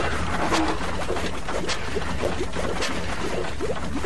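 Steam hisses in bursts.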